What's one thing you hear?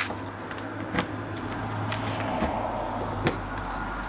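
A hand knocks on a camper van door.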